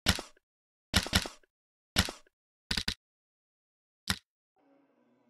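Short, sharp interface clicks sound a few times.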